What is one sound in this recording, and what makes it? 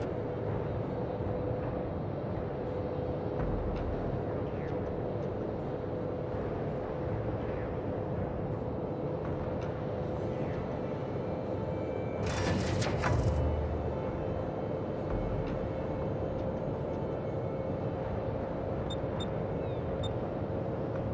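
Water rushes and washes against a ship's hull.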